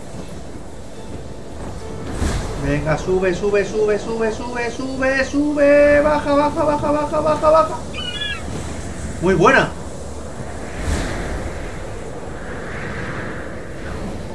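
Wind rushes past steadily.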